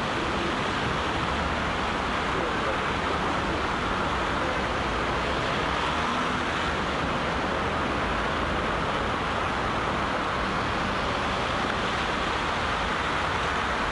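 Many footsteps shuffle through snow.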